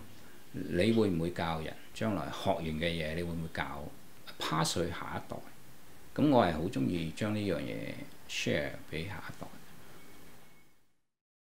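A middle-aged man speaks calmly and close into a microphone.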